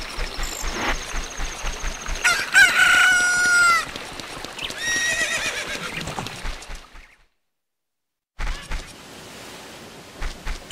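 Footsteps patter quickly on stone steps.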